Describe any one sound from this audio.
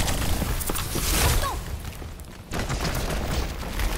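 Ice crackles and forms with a sharp crunch.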